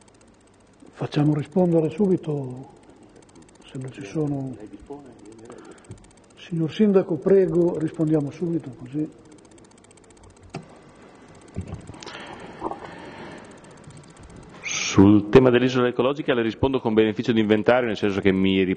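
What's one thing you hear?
A man speaks calmly into a microphone in a room with some echo.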